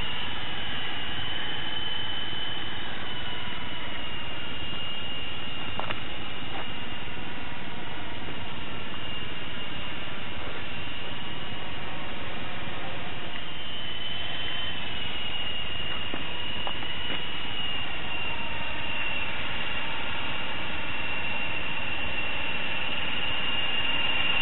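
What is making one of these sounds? A small electric motor whines steadily at a high pitch.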